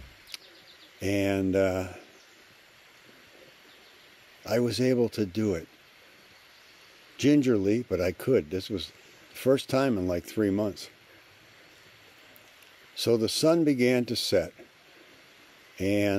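An elderly man speaks calmly and close by, pausing between phrases.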